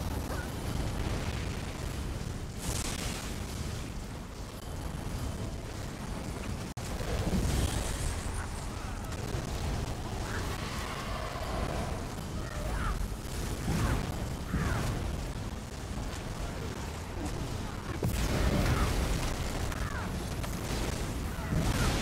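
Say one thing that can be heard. Magic spells crackle and burst in a busy battle.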